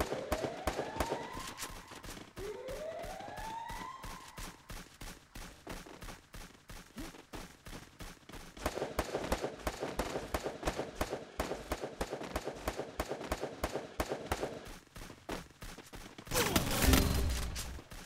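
Quick footsteps thump steadily across a wooden floor and stairs.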